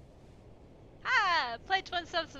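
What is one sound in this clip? A young woman laughs loudly into a close microphone.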